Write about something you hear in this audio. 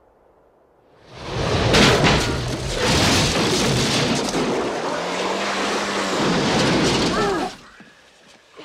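A car crashes loudly through a sign and plows into deep snow.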